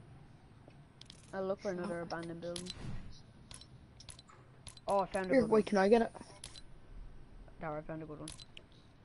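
Short game menu clicks and blips sound as selections change.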